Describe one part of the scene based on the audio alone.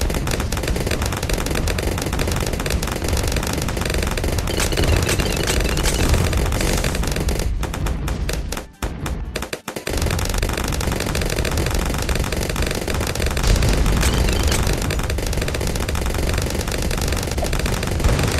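Cartoon explosions and shots pop rapidly.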